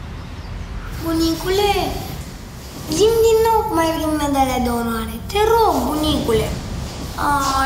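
A young boy pleads eagerly, close by.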